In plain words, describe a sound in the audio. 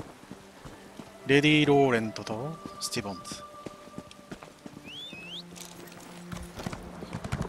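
Footsteps crunch along a dirt path.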